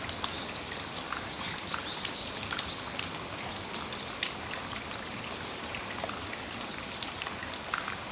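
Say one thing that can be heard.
Rain patters and drips steadily on a metal awning outdoors.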